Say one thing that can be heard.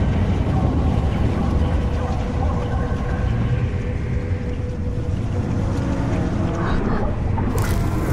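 A magical sparkling shimmer crackles softly.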